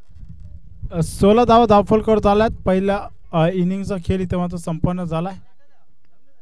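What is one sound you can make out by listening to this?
A man commentates with animation through a microphone.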